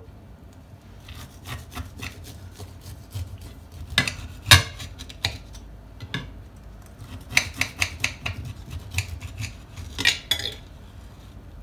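A knife crunches through a crusty baked cake.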